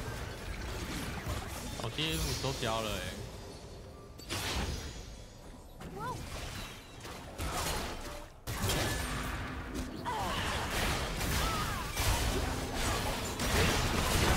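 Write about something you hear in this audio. A young woman talks with animation through a microphone.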